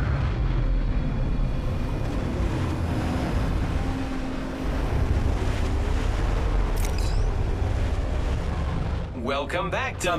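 A heavy aircraft engine roars low and steady overhead.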